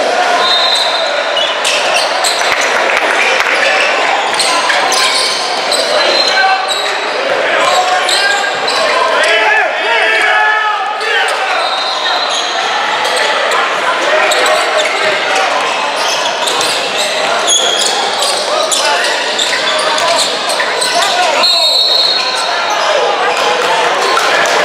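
Spectators and players chatter and call out in a large echoing gym.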